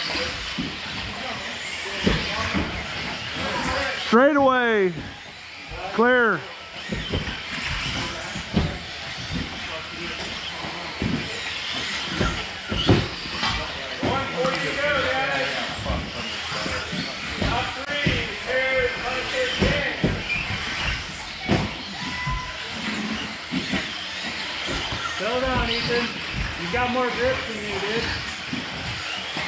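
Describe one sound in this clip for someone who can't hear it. Small electric motors whine, rising and falling in pitch as model cars race.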